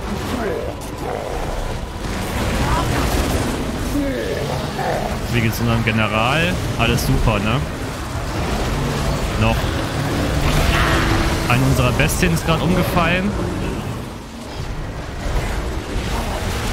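Weapons clash in a large battle.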